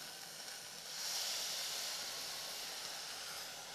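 Water pours into a steel pot.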